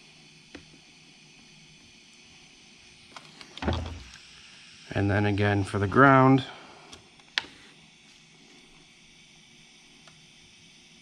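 Gloved hands handle engine-bay wiring with small clicks and rustles.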